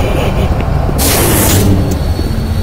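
A heavy metal door slides open with a sharp hiss.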